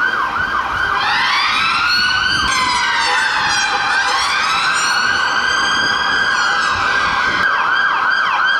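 Several sirens sweep up and down together.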